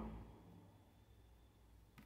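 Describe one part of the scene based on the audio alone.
A paintbrush dabs softly in a small pot of paint.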